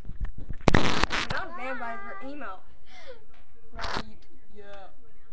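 A young woman speaks very close to a microphone, in a high, animated voice.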